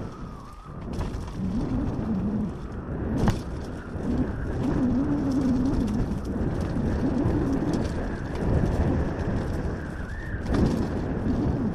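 Tyres knock and clatter over loose rocks.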